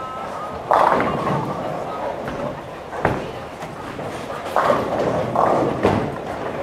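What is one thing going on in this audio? Bowling pins crash and clatter in a large echoing hall.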